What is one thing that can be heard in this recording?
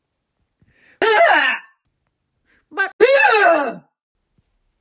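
A man exclaims loudly in short, exaggerated bursts.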